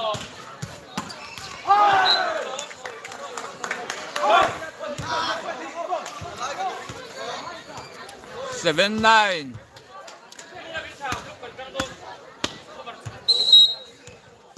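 A crowd of spectators cheers outdoors.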